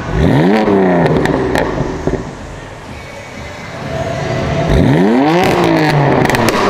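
A car exhaust pops and crackles after each rev.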